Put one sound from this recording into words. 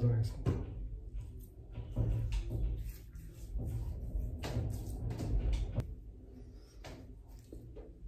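A man rubs shaving cream over his face with soft smearing sounds.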